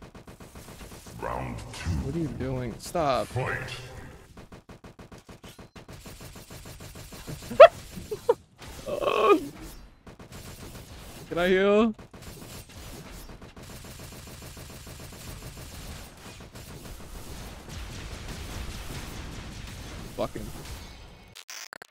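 Game combat effects whoosh and clash.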